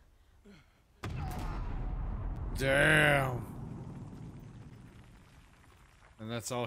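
An explosion booms and rumbles, then fades.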